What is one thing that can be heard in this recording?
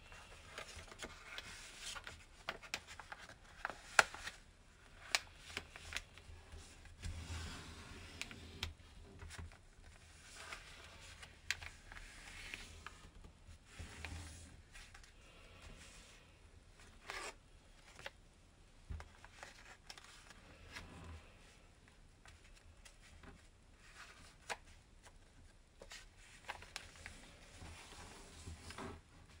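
Fingers press and crease folded paper with soft taps.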